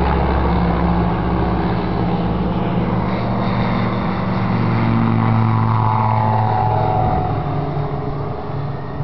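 A single-engine propeller plane drones past low overhead, its pitch dropping as it passes.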